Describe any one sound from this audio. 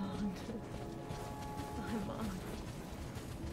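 A young woman talks calmly through a headset microphone.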